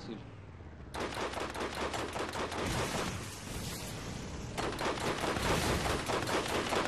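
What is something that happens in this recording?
A mounted machine gun fires in rapid bursts.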